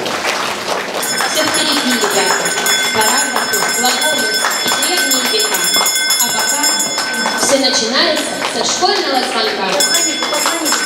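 A small hand bell rings continuously.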